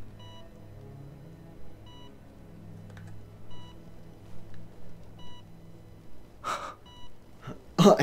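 A heart monitor beeps at a steady pace.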